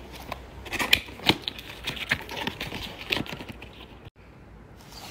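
Cardboard rustles and scrapes as a box is handled and opened.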